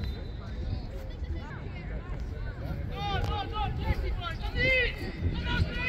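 Children shout and call out across an open field in the distance.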